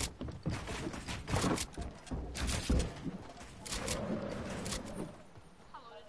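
Building pieces snap into place with quick, sharp clacks.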